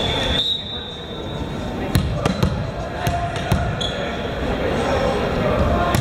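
A volleyball bounces on a wooden floor.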